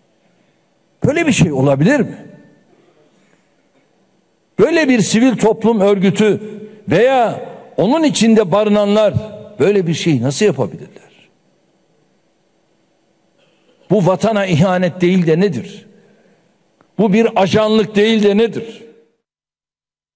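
A man gives a forceful speech through a microphone, in loud bursts with pauses, in a large echoing hall.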